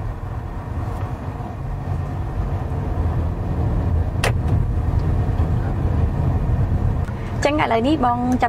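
A car engine and tyres rumble low and steady from inside the car.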